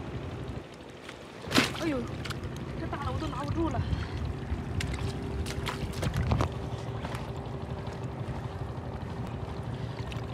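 Water splashes as seaweed is pulled from a shallow pool.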